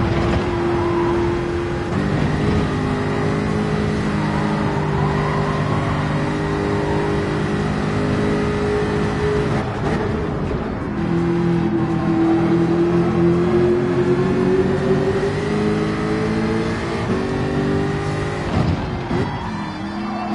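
A racing car engine roars at high revs and shifts through gears.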